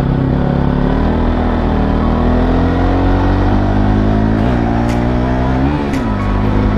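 A motorcycle engine hums steadily and shifts in pitch as the rider changes speed.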